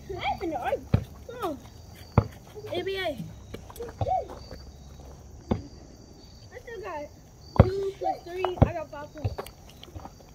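A basketball bounces with sharp thuds.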